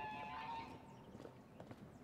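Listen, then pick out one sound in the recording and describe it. Boots tread on a hard floor.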